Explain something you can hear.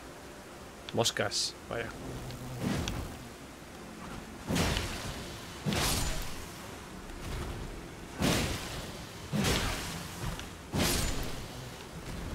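Heavy weapon blows whoosh and thud in a fight.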